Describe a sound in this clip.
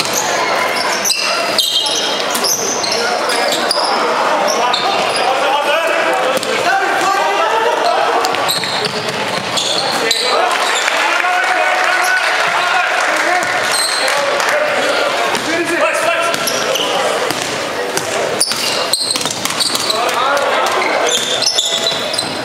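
Basketball sneakers squeak on a wooden court in a large echoing hall.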